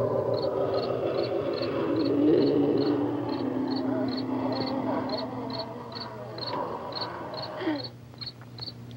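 A woman screams loudly and at length.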